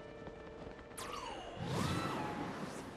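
A loud magical whoosh swirls up suddenly.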